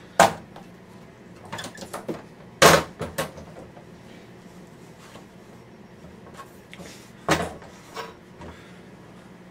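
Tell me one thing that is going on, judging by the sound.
A chair knocks and thuds against the floor nearby.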